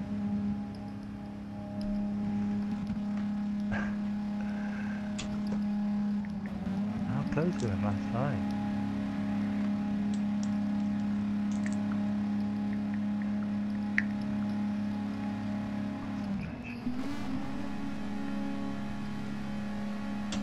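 Racing car engines hum steadily at high speed.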